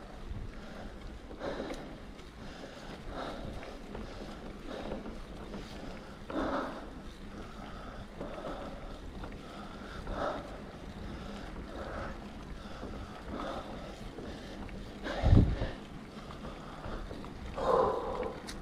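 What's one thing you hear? Bicycle tyres roll steadily on a paved road.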